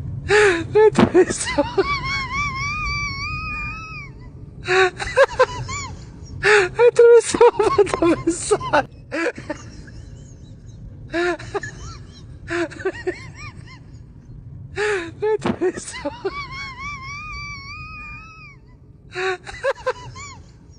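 Young women giggle and laugh close by.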